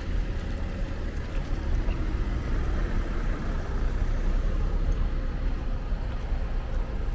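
City traffic hums steadily nearby.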